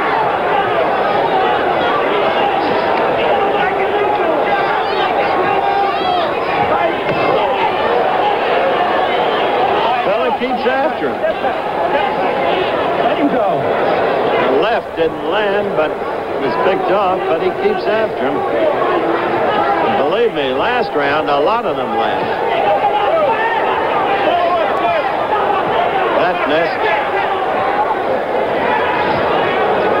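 A large crowd cheers and shouts.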